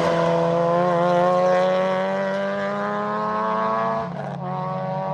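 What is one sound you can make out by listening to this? A rally car engine screams at high revs as the car speeds away.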